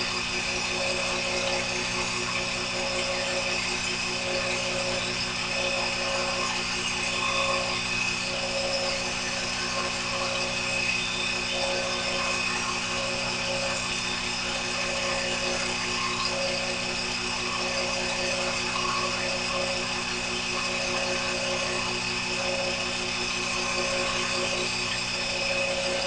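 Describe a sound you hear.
A lathe cutting tool scrapes metal with a faint, regular pulsing.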